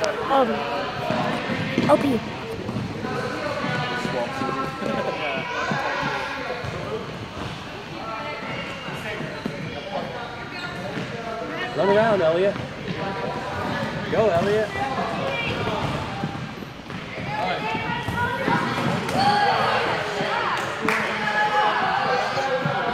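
Young children shout and chatter throughout a large echoing hall.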